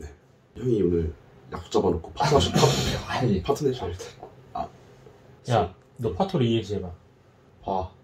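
A young man talks nearby with animation.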